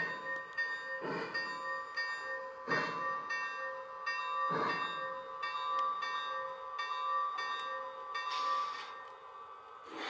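A model steam locomotive whistle blows in long steady tones.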